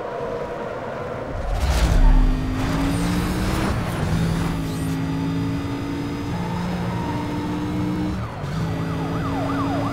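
A car engine roars at high speed and shifts gears.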